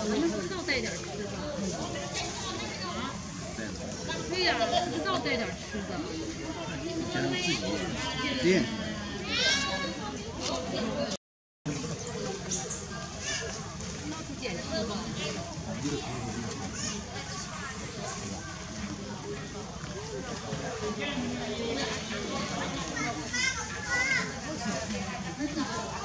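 A baby monkey squeals and whimpers close by.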